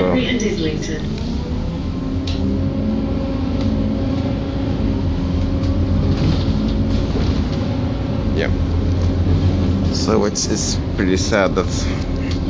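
Bus windows and panels rattle as the bus drives along.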